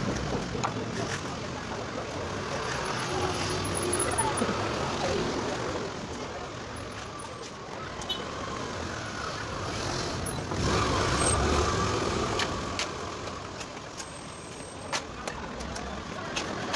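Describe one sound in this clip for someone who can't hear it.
A trowel scrapes and taps on wet cement.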